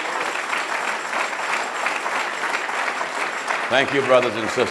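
A large crowd claps and cheers in an echoing hall.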